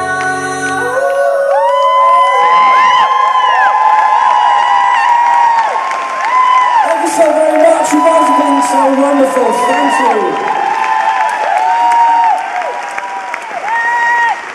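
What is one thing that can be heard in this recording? A man sings into a microphone over loudspeakers in a large hall.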